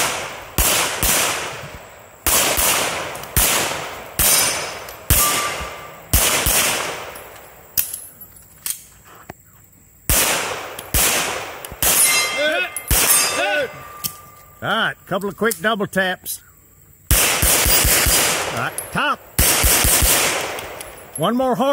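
A pistol fires sharp shots outdoors, each echoing away through the trees.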